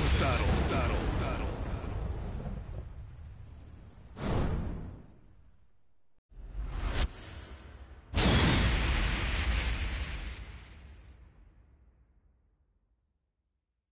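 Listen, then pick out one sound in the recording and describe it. Loud explosions boom and rumble, then fade away.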